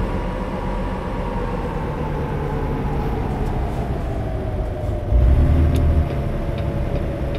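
A truck rumbles over the road.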